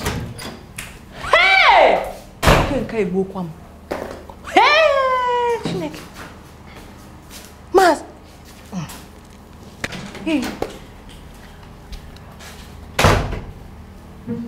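A woman exclaims in surprise, close by.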